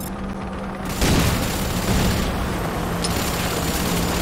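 A gun fires loud bursts.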